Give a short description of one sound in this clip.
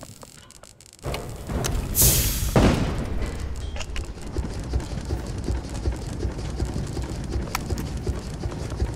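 A heavy machine engine starts and rumbles loudly.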